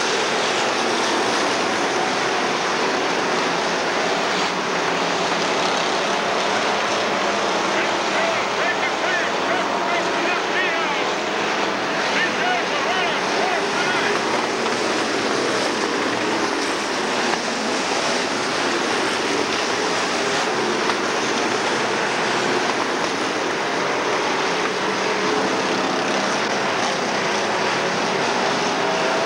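Race car engines roar steadily as cars speed around a track.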